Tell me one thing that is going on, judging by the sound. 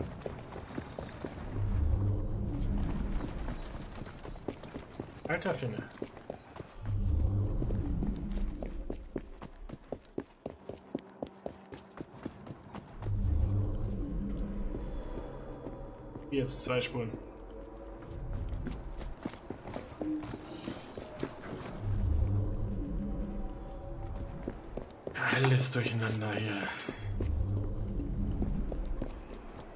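A man talks with animation through a close microphone.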